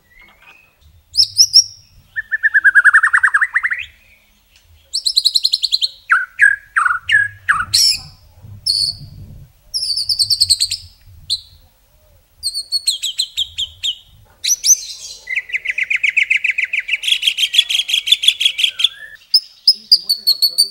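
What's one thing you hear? A songbird sings loudly and close by in varied whistles, trills and rapid chattering phrases.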